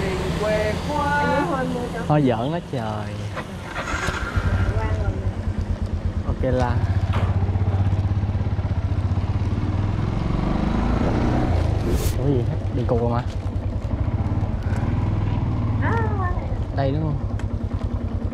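A man talks casually close by, over the engine.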